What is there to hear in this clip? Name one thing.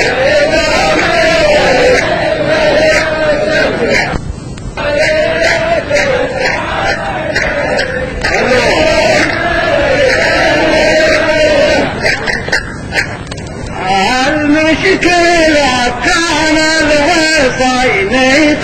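A middle-aged man sings loudly into a microphone.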